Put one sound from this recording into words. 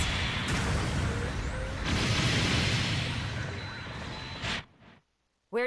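Laser cannons fire with a loud buzzing blast.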